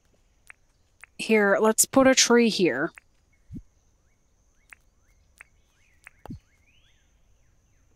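Soft clicks and blips sound as a game menu opens and closes.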